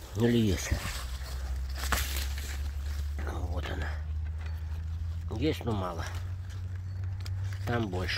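Leaves rustle as a hand pushes through low plants.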